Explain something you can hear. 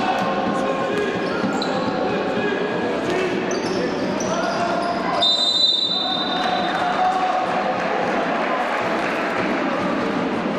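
A crowd cheers and chatters throughout an echoing indoor hall.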